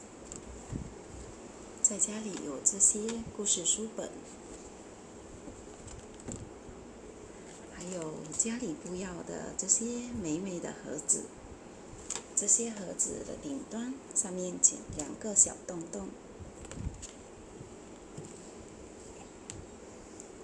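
Paper rustles as a woman handles a cardboard model.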